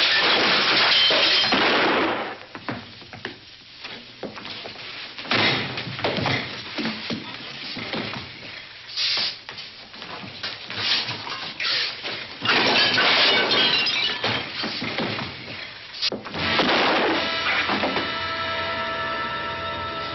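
Two men scuffle and grapple noisily.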